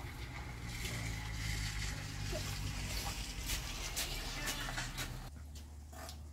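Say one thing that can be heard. A broom sweeps across a dirt floor.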